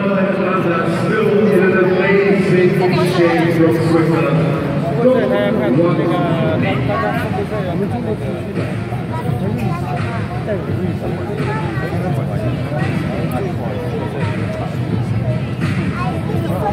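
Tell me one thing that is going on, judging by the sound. A large crowd chatters and murmurs in a big echoing arena.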